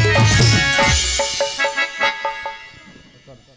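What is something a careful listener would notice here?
A keyboard plays a tune through loudspeakers.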